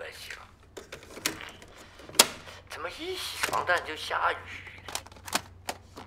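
Buttons on a cassette player click down.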